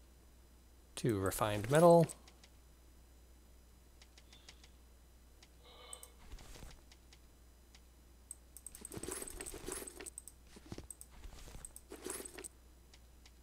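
A young man speaks calmly into a microphone, close by.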